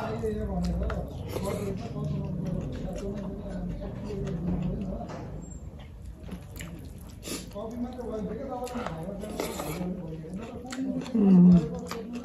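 A young woman chews food noisily with her mouth open.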